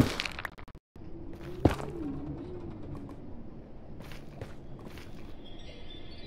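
Footsteps tap on hard ground.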